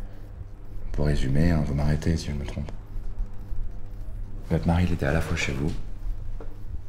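A man speaks calmly and close.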